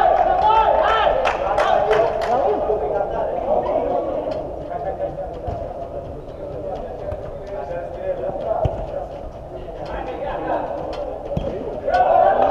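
A football is kicked on artificial turf in a large echoing hall.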